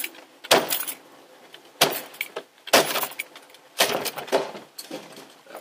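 A man pounds loudly on a door with his fist.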